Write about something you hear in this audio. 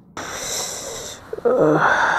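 A man groans in distress.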